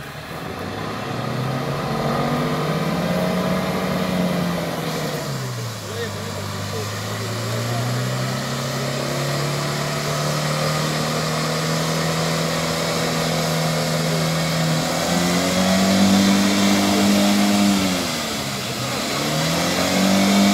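A car engine roars and revs as the vehicle drives through deep water.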